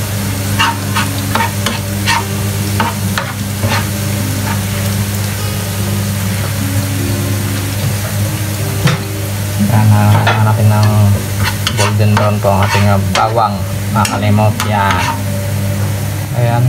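A metal spoon scrapes and clinks against a wok.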